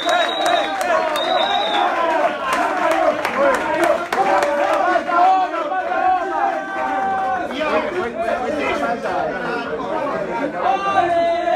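A young man sings or chants loudly through a microphone.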